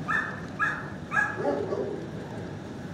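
A dog whines in short, high-pitched yelps close by.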